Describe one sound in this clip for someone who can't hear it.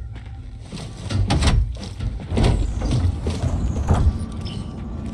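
A heavy metal vault door unlocks with deep clunks and rumbles.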